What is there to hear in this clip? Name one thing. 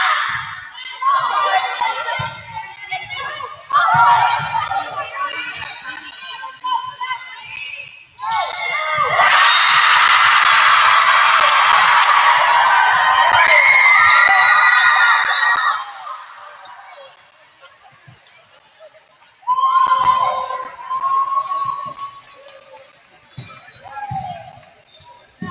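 Young women players shout and call to each other in a large echoing hall.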